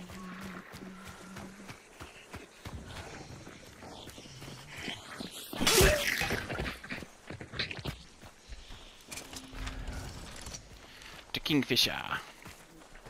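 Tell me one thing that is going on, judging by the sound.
Footsteps crunch over dirt and gravel.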